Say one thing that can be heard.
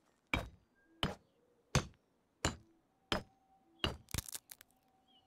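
A hammer strikes a hard surface in steady, repeated blows.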